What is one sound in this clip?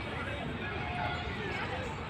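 Small fountain jets splash onto paving.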